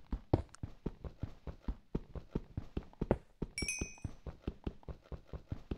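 A pickaxe taps stone quickly and steadily.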